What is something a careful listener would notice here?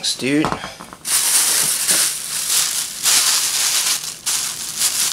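A plastic bag crinkles as it is handled and pulled from a box.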